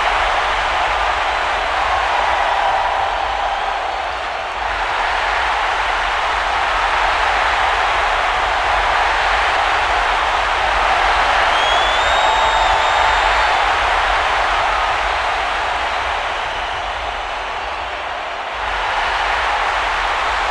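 A large crowd cheers and roars throughout, in a huge echoing arena.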